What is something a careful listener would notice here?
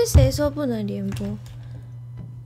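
A young woman sings a short, falling phrase close to a microphone.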